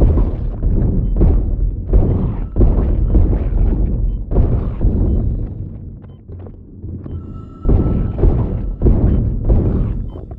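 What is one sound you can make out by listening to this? Weapon shots fire in rapid bursts with booming impacts.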